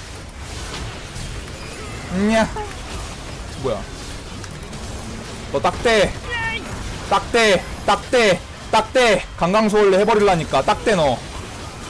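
Game fight effects clash and whoosh.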